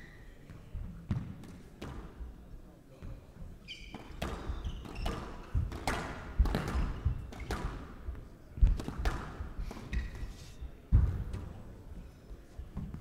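A squash ball is struck hard and smacks against the walls.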